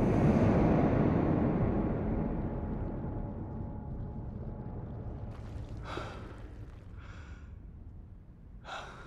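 A deep rumble starts loud and slowly fades away.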